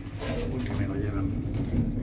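An elevator floor button clicks as it is pressed.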